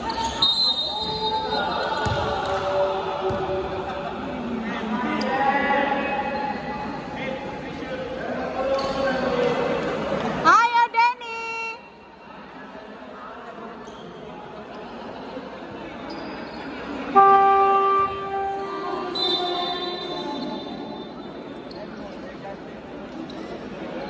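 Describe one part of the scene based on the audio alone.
Sneakers squeak sharply on a hard court.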